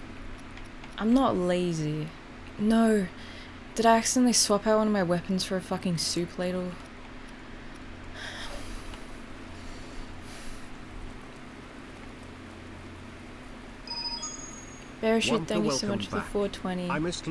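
A young woman talks casually and with animation into a close microphone.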